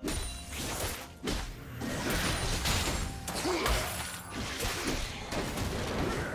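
Magic spells burst, whoosh and crackle in a fast, busy fight.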